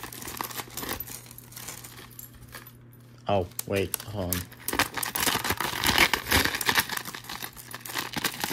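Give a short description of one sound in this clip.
Metal chains jingle and clink as they swing.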